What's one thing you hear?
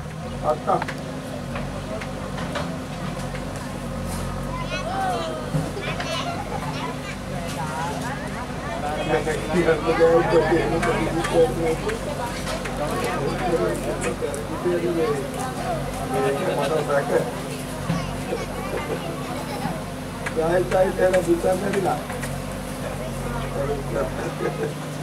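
A digger's diesel engine rumbles steadily nearby.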